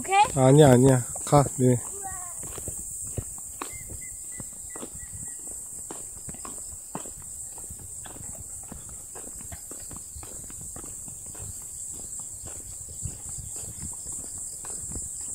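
Bicycles rattle and tick along a paved road.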